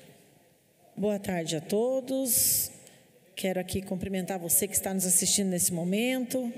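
A woman speaks calmly into a microphone, heard through a loudspeaker in a large room.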